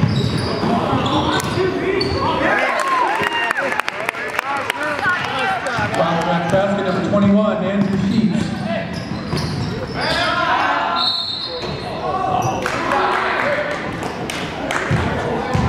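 A crowd of young men shouts and cheers in an echoing gym.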